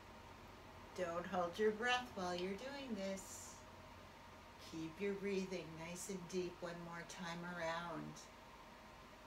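An older woman speaks calmly, close by.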